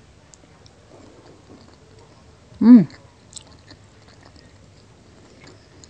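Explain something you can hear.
A young woman chews food softly and close up.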